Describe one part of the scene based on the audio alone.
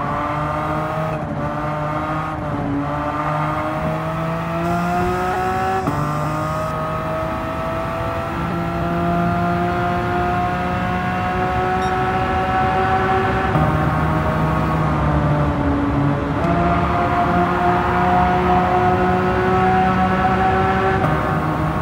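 A race car engine roars at high revs, rising in pitch as it speeds up and dropping briefly at each gear shift.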